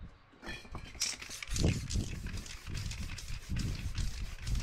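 A spray can hisses as paint is sprayed.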